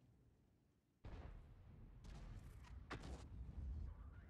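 A tank cannon fires with a loud boom.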